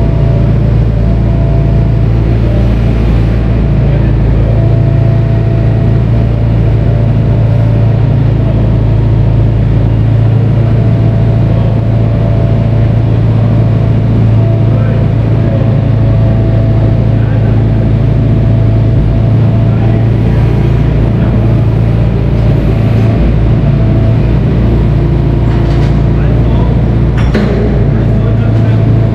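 A heavy diesel engine idles with a loud, steady rumble.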